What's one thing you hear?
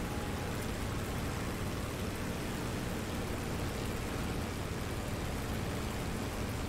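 A propeller plane's engine drones steadily with a low, rumbling roar.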